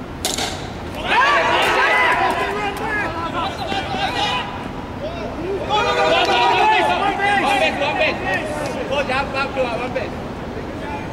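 Several men shout and cheer with excitement outdoors.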